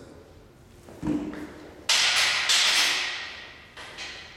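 A barbell clanks against a metal rack.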